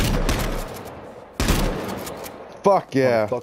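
A gunshot rings out twice with a rolling echo.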